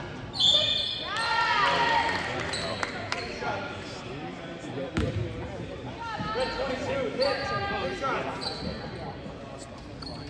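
Spectators cheer and chatter in an echoing gym.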